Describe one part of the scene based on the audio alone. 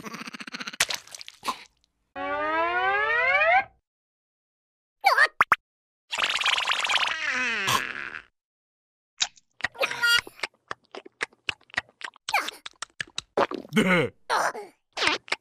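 A second cartoon creature chatters and grunts in reply.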